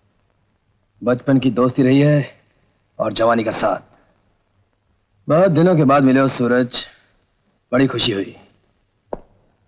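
A man speaks forcefully and with animation.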